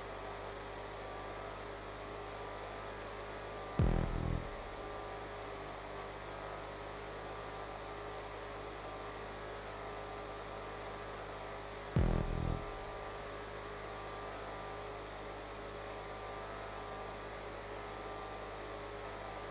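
An SUV engine drones at top speed.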